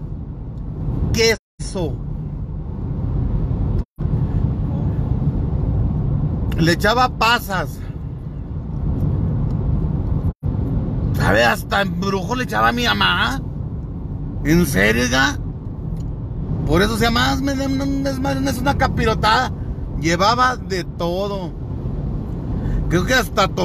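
A car engine hums and tyres roll steadily on a paved road, heard from inside the car.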